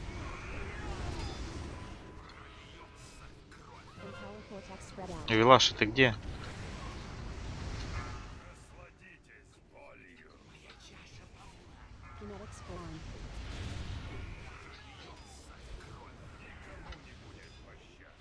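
Magic spells crackle and boom in a fantasy battle.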